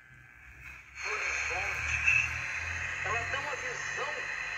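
A small radio plays a station steadily with a tinny sound.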